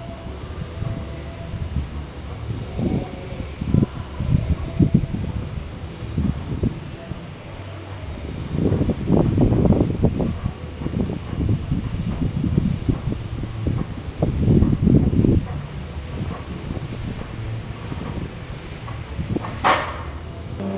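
A man pulls a rope hand over hand, the rope rasping and thudding.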